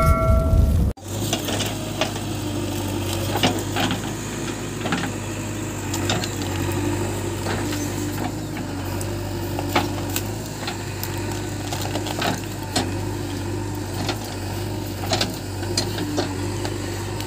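A backhoe's diesel engine runs with a steady low rumble.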